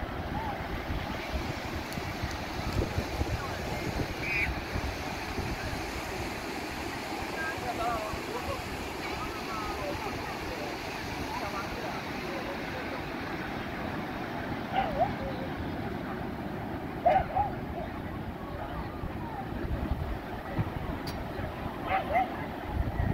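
Waves wash steadily onto a beach, outdoors in wind.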